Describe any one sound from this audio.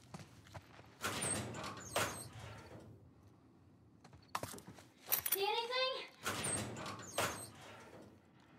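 Metal locker doors creak and clang open.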